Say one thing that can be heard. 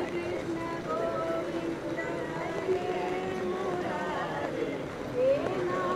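A woman cries out tearfully nearby.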